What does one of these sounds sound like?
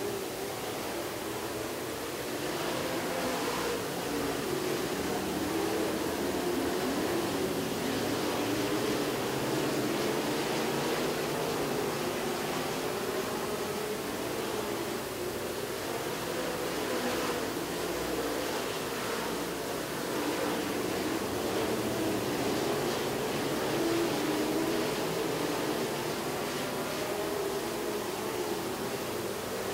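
Race car engines roar loudly around a dirt track.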